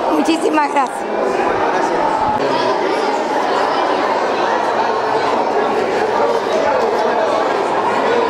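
A crowd of people chatter and laugh in a room.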